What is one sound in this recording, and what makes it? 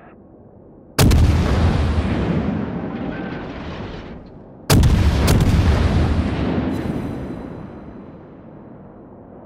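Heavy guns fire with loud booms that rumble away slowly.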